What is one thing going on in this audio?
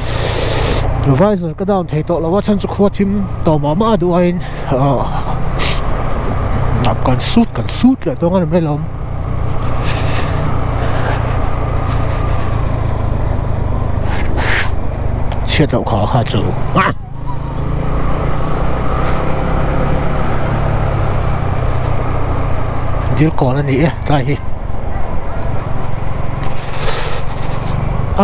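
A motorcycle engine hums steadily at low speed, rising and falling as the rider changes speed.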